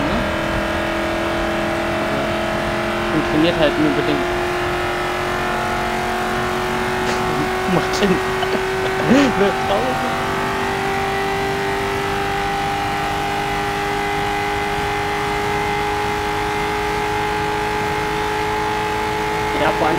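A racing car engine drones steadily at high speed, its pitch slowly rising.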